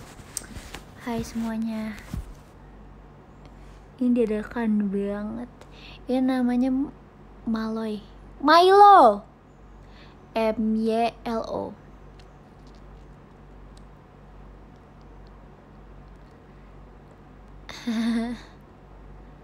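A young woman talks casually and with animation close to a microphone.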